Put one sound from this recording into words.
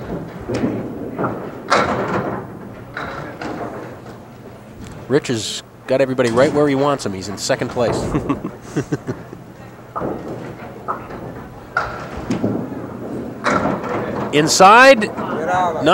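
Bowling pins clatter as a ball knocks them down.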